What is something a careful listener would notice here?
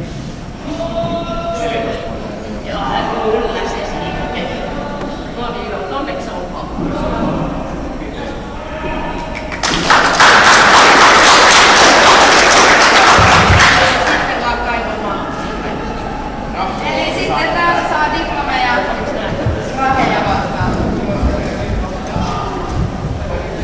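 Several people talk in a large echoing hall.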